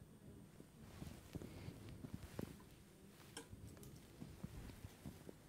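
Surgical instruments clink and tap softly.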